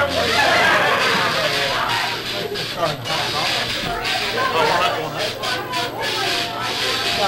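Several adults talk excitedly over one another close by.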